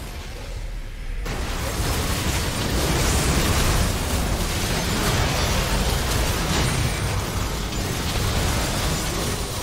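Game spell effects whoosh and crash in a busy battle.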